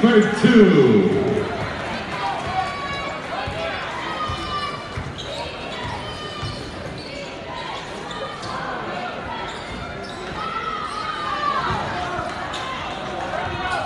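A crowd murmurs and cheers throughout a large echoing gym.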